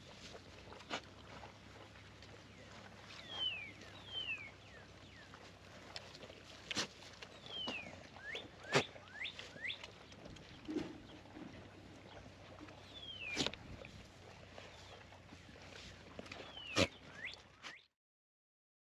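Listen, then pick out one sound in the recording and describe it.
Goats lap and slurp water close by.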